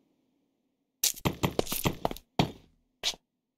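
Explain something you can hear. A block is set down with short knocks.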